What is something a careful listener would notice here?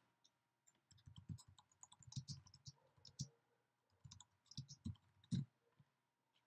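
Keys click softly on a computer keyboard.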